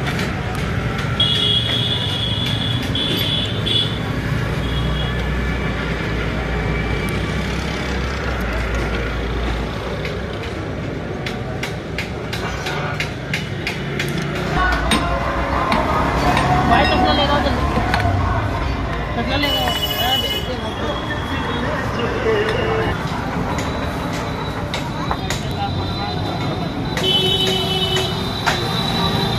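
Metal tools clink and tap against a vehicle's axle.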